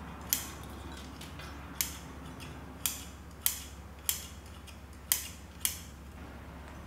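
Scissors snip through dry roots.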